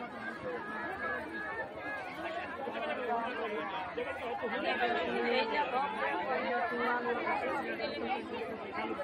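A crowd of women and men chatter and call out nearby, outdoors.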